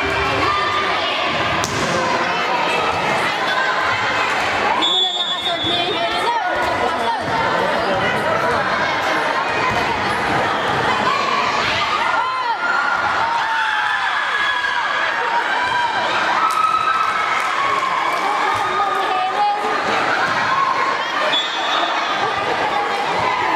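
Young women call out and shout to each other during play.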